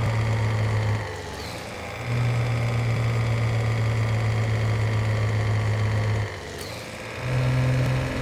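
A truck engine briefly goes quiet as a gear changes.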